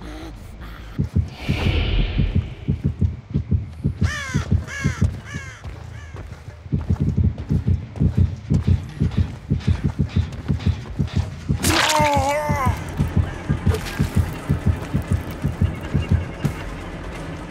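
Heavy footsteps thud steadily on the ground.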